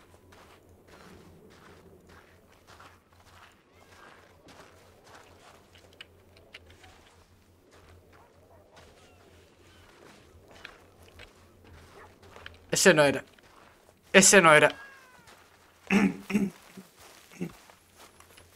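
Footsteps walk softly over grass.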